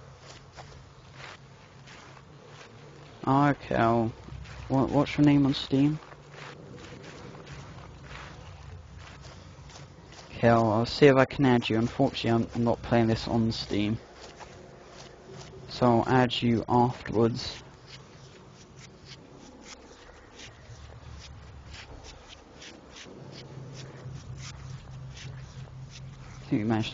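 Grass rustles steadily as someone crawls through it.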